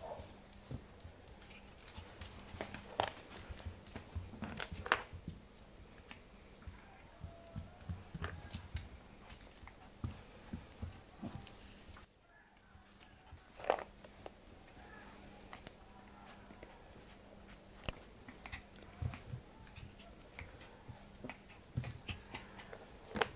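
A puppy yaps and growls playfully close by.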